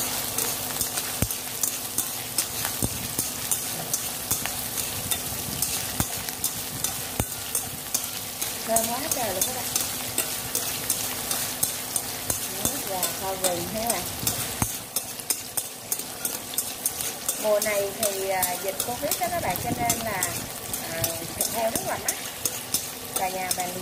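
A utensil scrapes and taps against a metal pan.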